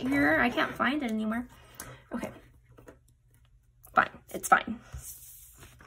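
Paper rustles and crinkles as sheets are handled.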